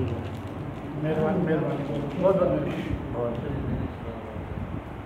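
Several men talk close by.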